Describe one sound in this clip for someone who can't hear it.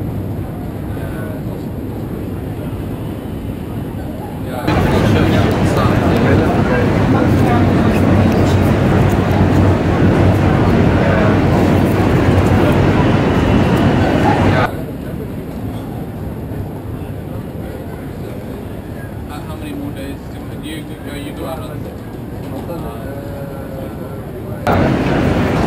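Outdoor street noise hums in the background.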